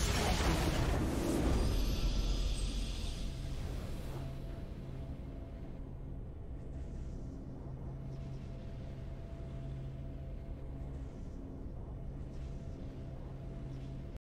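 A fanfare plays and then settles into soft, steady music.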